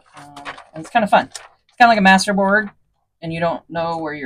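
A sheet of paper rustles as it is lifted and folded.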